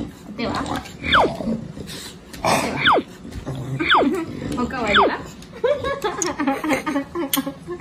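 A woman talks to dogs up close.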